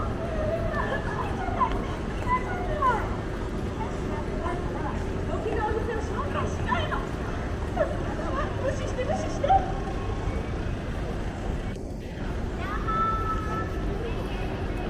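A crowd of men and women chatters in a busy street outdoors.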